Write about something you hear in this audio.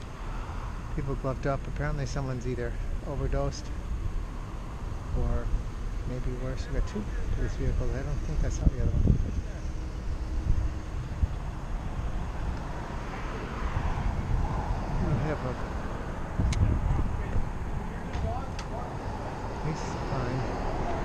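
Wind rumbles steadily across a moving microphone outdoors.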